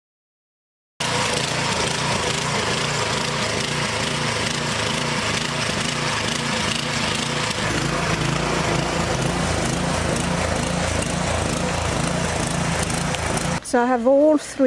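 A garden tiller engine runs with a loud steady chugging.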